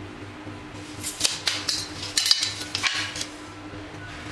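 A metal square clicks and taps against a wooden strip.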